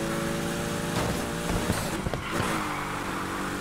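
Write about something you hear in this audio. An engine's pitch drops and climbs again as the car shifts gears.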